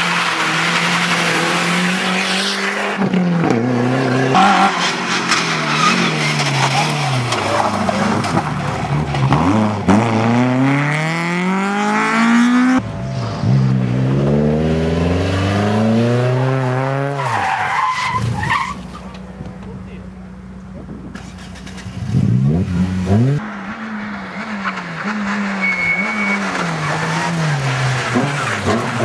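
Rally car engines roar and rev hard, rising and falling in pitch as cars speed past close by.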